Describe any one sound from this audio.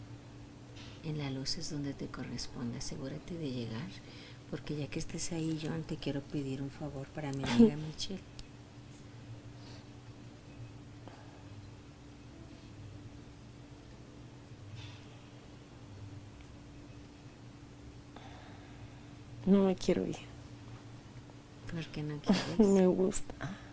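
A woman speaks sleepily and softly, close by.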